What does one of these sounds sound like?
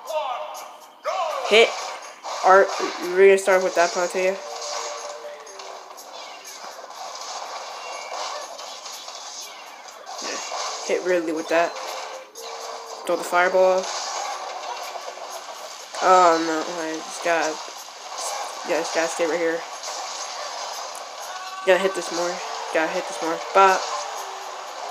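Video game fighting sound effects and character voices burst out from time to time.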